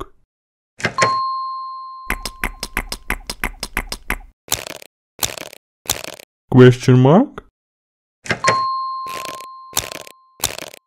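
An electronic chime rings out.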